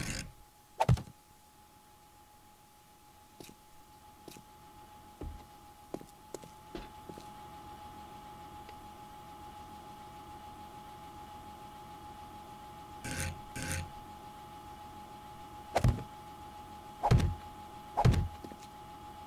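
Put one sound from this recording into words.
Heavy blocks thud as they are set down one after another.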